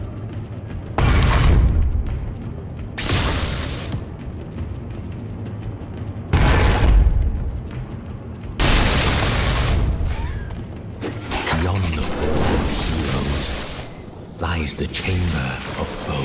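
Magic spells crackle and burst loudly, again and again.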